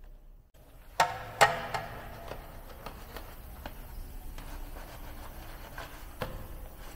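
A brush scrubs a foamy wheel with wet scratching.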